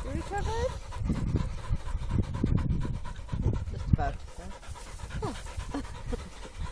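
A dog whines in high, rising yelps.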